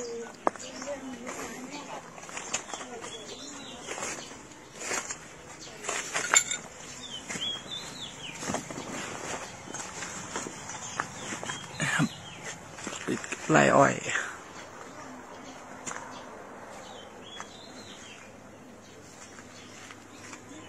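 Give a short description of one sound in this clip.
Footsteps crunch over burnt debris.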